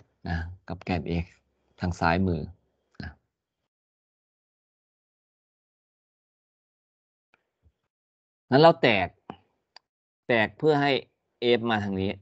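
A man explains calmly through an online call, with pauses.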